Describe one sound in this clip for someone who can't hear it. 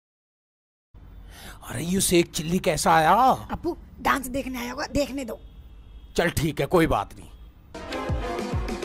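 A young woman speaks sharply close by.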